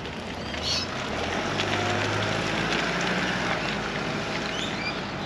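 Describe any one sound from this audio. A car drives past on a road and fades away.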